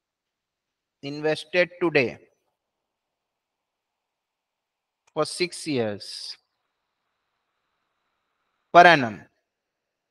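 A man speaks calmly in short phrases through a microphone.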